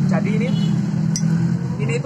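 A spoon clinks against a glass.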